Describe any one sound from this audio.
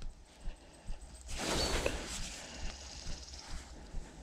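Fingers rub a small coin.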